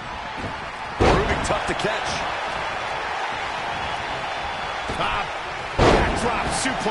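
Heavy thuds land on a wrestling ring mat.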